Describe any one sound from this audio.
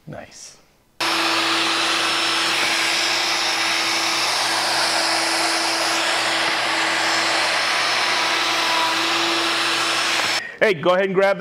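An electric router whines loudly and steadily as it cuts wood.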